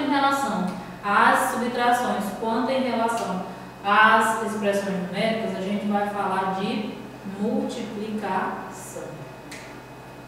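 A young woman speaks calmly and clearly to listeners, close by.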